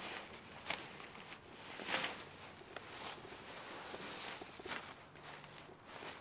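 A plastic garbage bag rustles and crinkles as it is dragged.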